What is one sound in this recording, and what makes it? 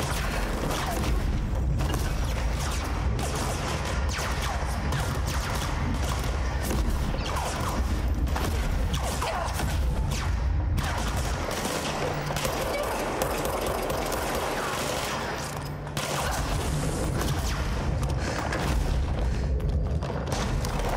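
Heavy chunks of concrete crash and tumble through the air.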